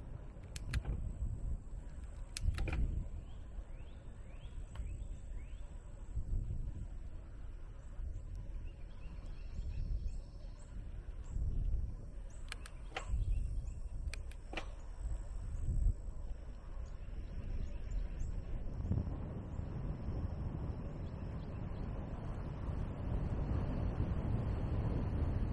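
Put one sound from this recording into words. Bicycle tyres hum steadily on smooth pavement.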